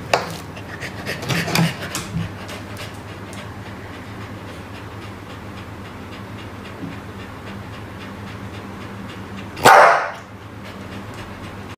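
A dog pants.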